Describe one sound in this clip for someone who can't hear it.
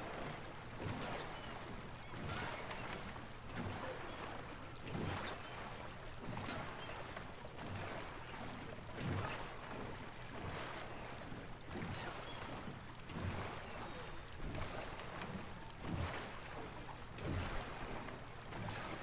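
Oars splash into water in a steady rhythm.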